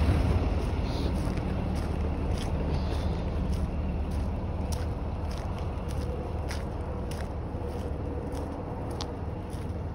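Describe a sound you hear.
Footsteps scuff along on rough pavement.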